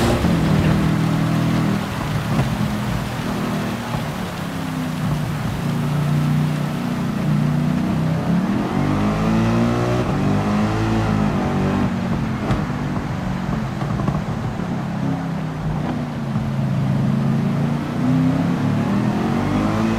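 Tyres hiss on a wet track.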